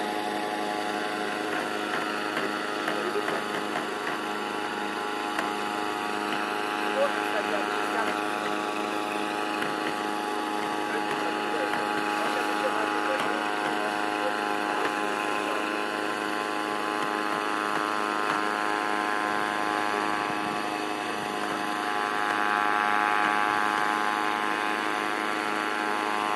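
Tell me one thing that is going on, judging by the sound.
A small aircraft engine drones steadily overhead.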